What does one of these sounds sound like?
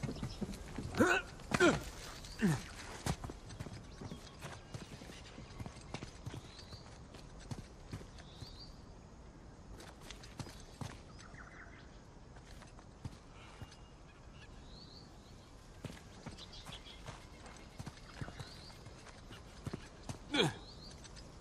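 A man grunts with effort while climbing.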